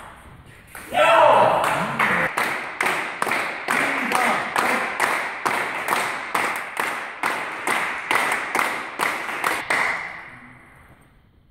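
A crowd claps and applauds steadily.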